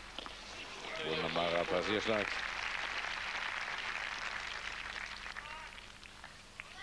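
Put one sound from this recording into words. A stadium crowd applauds and cheers.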